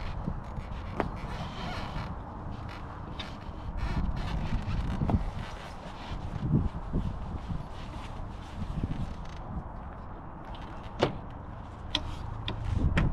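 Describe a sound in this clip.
Metal parts click and clack on a roof tent.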